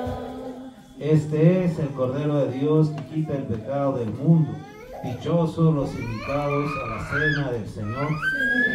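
A man speaks through a loudspeaker, reading out in a steady voice.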